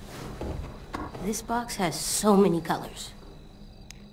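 A teenage girl speaks calmly.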